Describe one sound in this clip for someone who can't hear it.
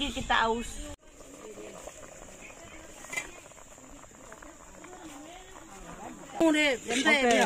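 A pot of soup bubbles as it boils.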